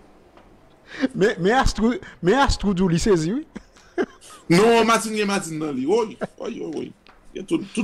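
A man laughs and talks animatedly over an online call.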